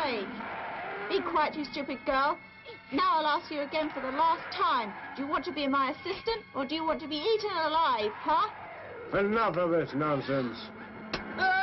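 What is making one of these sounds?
A woman speaks in a mocking, taunting voice.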